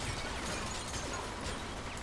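Debris clatters after an explosion.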